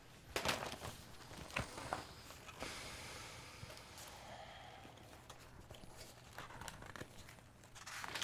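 Paper rustles as pages are turned.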